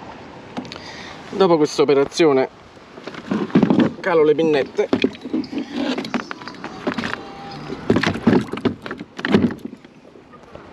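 Hands knock and click on a plastic kayak deck.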